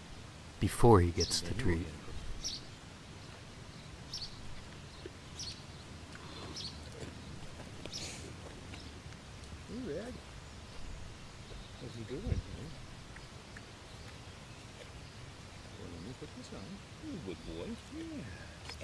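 A man talks in short bursts, close by, outdoors.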